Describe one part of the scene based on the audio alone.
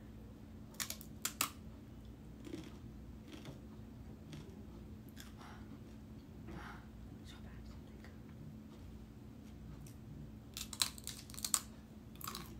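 A woman bites into a crisp snack with loud, crackling crunches close by.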